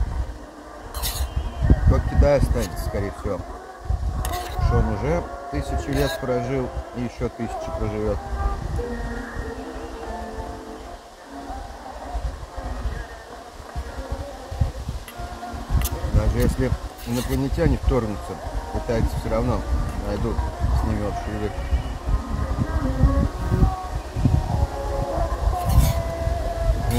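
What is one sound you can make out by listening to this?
A spoon scrapes and clinks against a metal bowl.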